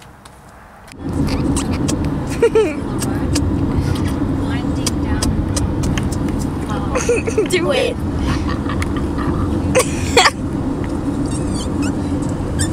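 Road noise hums steadily inside a moving car.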